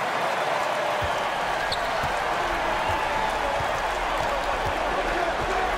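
A basketball bounces on a hardwood court in steady thumps.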